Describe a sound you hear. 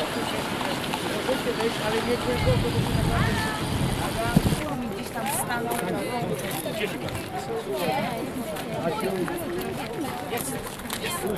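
A crowd of people chatters outdoors, close and far off.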